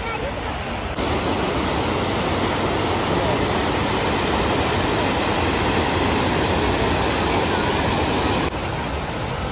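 A waterfall rushes and splashes loudly.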